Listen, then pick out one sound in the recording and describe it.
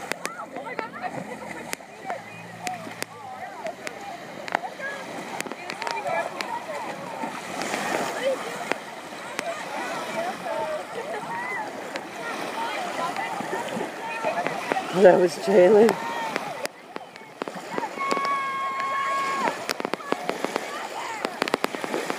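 Young women talk and shout excitedly close by, outdoors.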